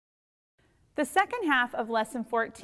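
A woman speaks calmly and clearly into a nearby microphone.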